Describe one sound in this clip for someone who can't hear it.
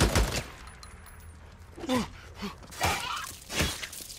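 A wolf snarls and growls up close.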